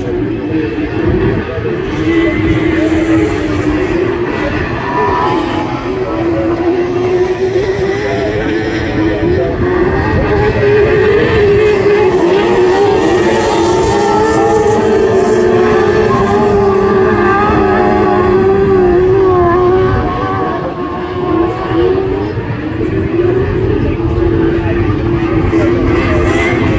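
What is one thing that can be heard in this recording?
Small racing engines drone and rev around a dirt track outdoors.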